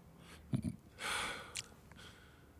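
A man sips a hot drink.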